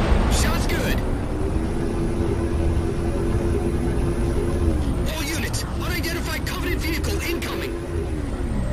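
A hovering vehicle's engine hums steadily with a low whine.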